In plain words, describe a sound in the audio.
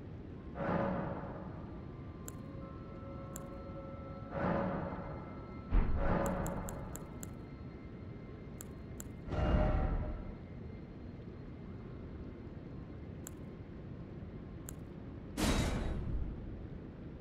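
Whooshing chimes swell when menus open and close.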